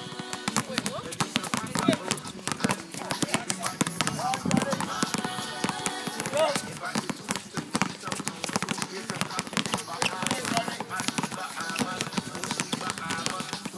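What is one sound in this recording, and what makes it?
Basketballs bounce rapidly on a hard outdoor court.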